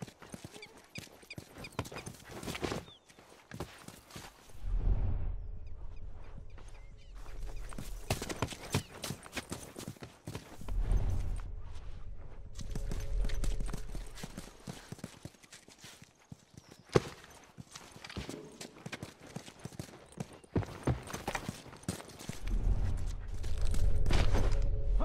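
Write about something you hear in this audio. Footsteps thud quickly on the ground as a soldier runs.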